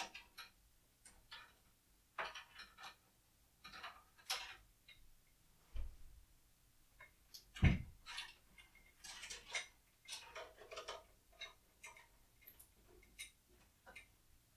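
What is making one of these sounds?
Cables rustle and click as a hand handles them.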